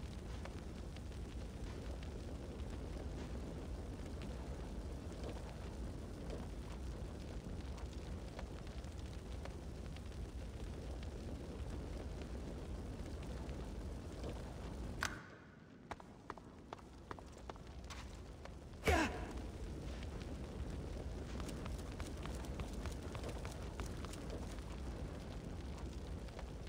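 Flames crackle and roar steadily.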